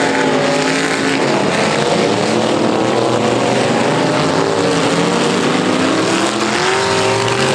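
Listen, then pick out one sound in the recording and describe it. Car tyres skid and spin on loose dirt.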